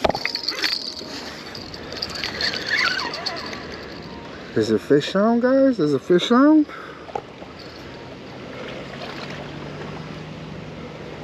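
Water laps gently below.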